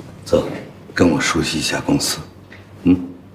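An older man speaks in a low, firm voice.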